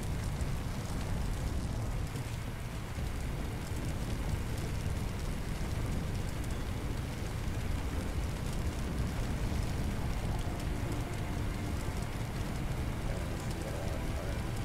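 Fire roars loudly and steadily.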